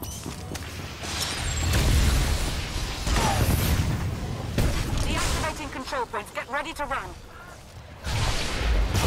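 Energy weapons crackle and buzz in a fight.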